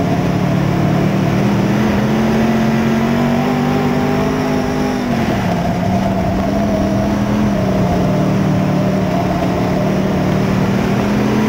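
A race car engine roars loudly up close, its pitch rising and dropping as the driver works the throttle.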